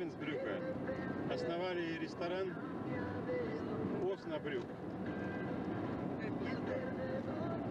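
A car drives steadily along a paved road.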